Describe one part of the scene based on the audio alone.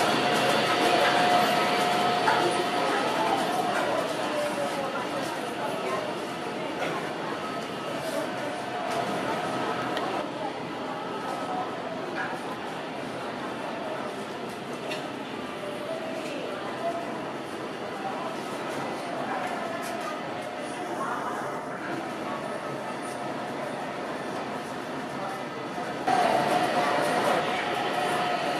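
A crowd of visitors murmurs and chatters in a large hall.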